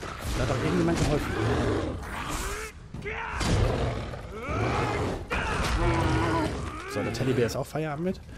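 A bear growls and roars.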